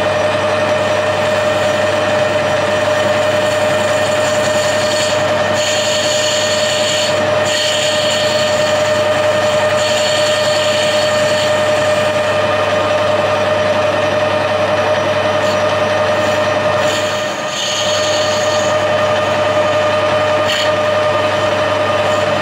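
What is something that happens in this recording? A cutting tool scrapes and hisses against turning steel.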